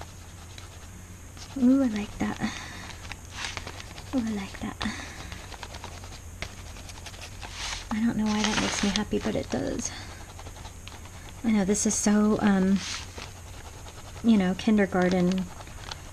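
A crayon scratches quickly across paper.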